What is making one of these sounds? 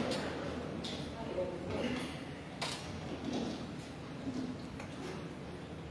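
A woman speaks into a microphone over a loudspeaker in an echoing hall.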